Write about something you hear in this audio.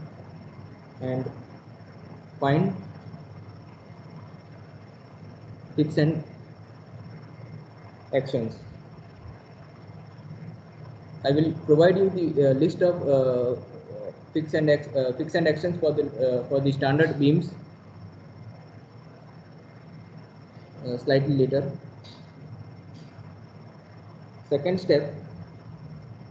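A man speaks calmly in short phrases with pauses, heard through an online call microphone.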